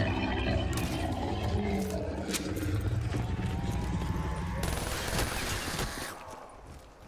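A weapon blast crackles and rumbles with electricity.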